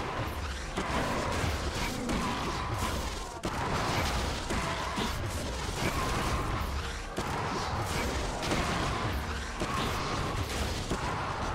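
Game magic effects whoosh and crackle in a fight.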